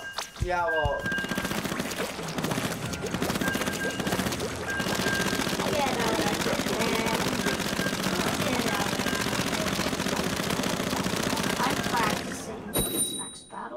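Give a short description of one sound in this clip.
Upbeat electronic game music plays loudly.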